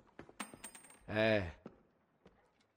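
A second man gives a short, lazy questioning grunt.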